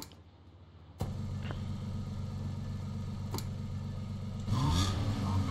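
A car engine starts and idles with a low hum.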